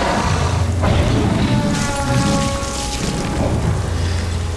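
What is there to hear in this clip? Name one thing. A huge beast growls deeply and loudly.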